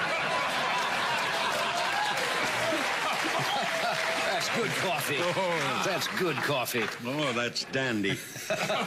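An elderly man laughs heartily.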